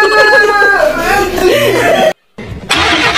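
A young man laughs hard close by.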